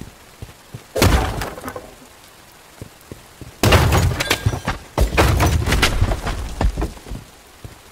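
A heavy blade whooshes through the air in quick swings.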